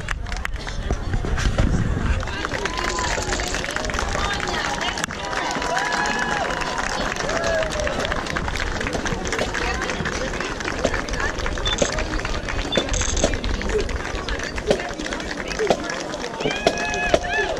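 A crowd of adults and teenagers chatters.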